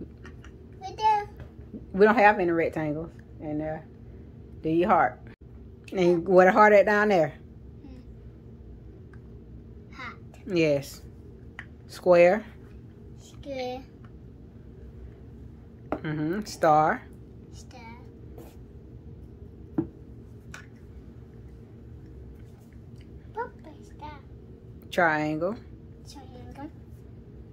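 A young child talks in short, lively bursts close by.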